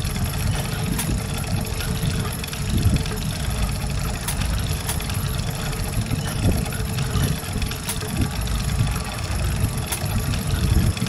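Metal gears click into place.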